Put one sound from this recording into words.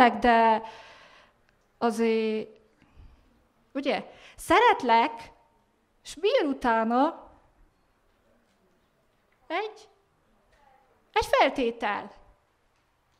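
A young woman speaks with animation into a microphone, heard through a loudspeaker, in short bursts with pauses.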